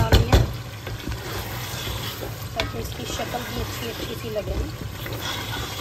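A wooden spoon scrapes and stirs thick stew in a metal pan.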